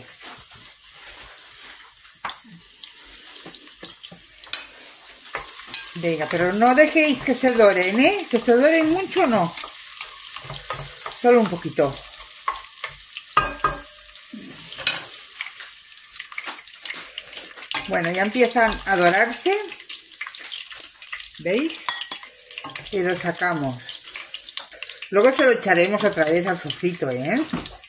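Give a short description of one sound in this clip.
Oil sizzles steadily.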